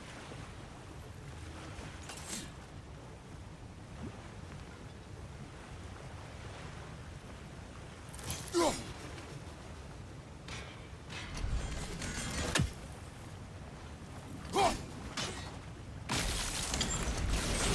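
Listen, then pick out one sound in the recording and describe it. Wind blows steadily in the background.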